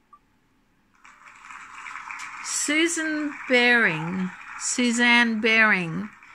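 Recorded applause plays from a laptop speaker.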